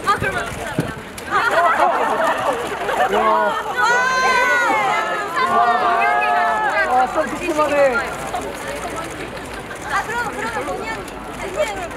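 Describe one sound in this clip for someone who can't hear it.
A young woman speaks brightly through a handheld megaphone.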